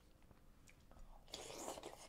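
A fork scrapes against a bowl.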